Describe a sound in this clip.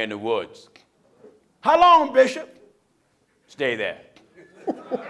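A middle-aged man preaches loudly into a microphone in short, forceful bursts.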